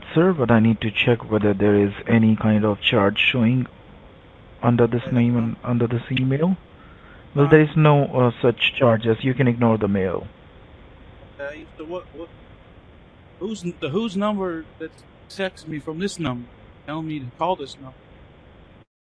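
A man speaks in a low voice.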